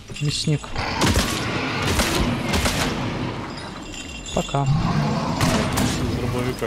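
A shotgun fires loud blasts that echo in an enclosed space.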